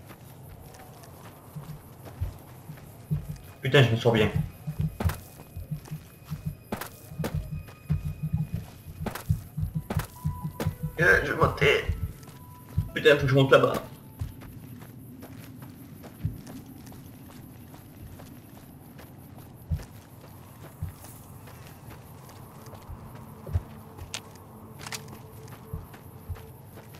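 Footsteps crunch quickly over loose gravel.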